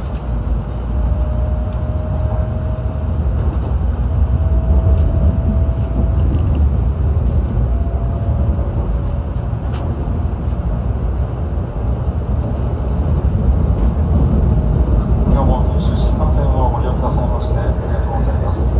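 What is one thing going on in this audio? A train rumbles steadily along the track at speed.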